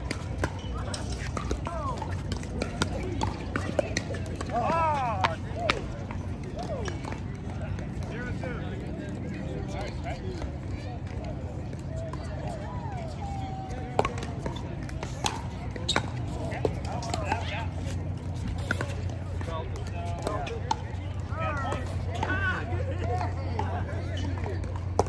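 Men call out and talk during play outdoors.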